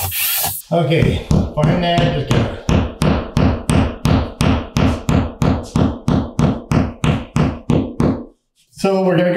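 A hammer taps a nail into a wall in quick, steady blows.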